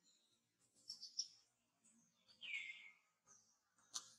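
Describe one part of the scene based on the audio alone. A baby monkey squeaks in short, high cries.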